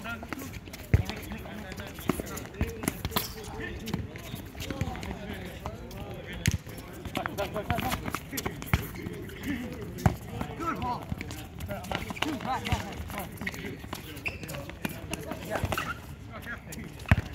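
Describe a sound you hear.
A soccer ball is kicked with sharp thuds.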